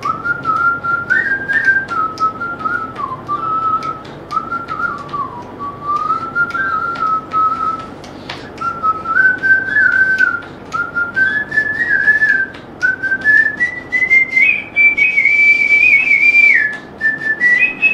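A man whistles a tune close by.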